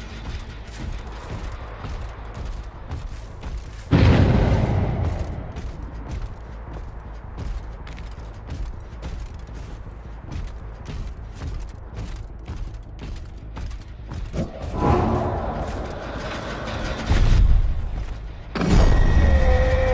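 Heavy footsteps crunch quickly and steadily on snow.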